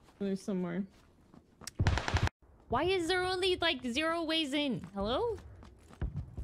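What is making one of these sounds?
A young woman squeals and talks excitedly into a close microphone.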